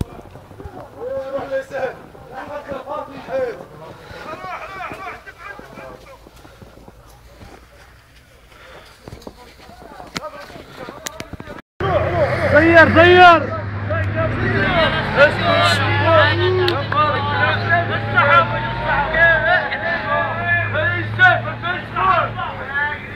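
Young men shout and call out excitedly outdoors.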